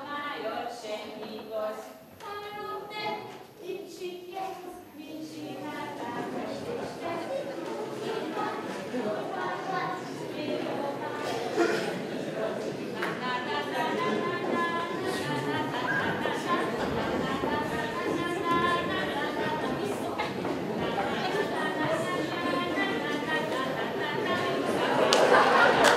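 An audience murmurs and chatters nearby.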